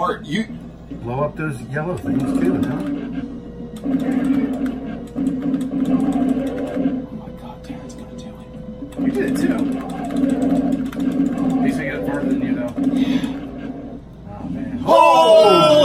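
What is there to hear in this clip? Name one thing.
Arcade game music and sound effects play loudly from a machine.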